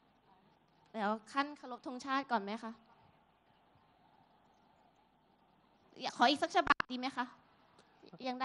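A young woman speaks with feeling into a microphone, heard through loudspeakers.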